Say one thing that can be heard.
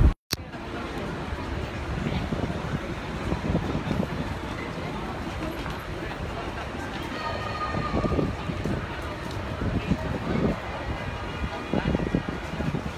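Busy city street noise with traffic rumbles steadily outdoors.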